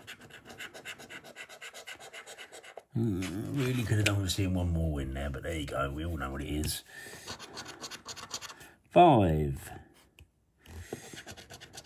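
A coin scratches at a scratch card.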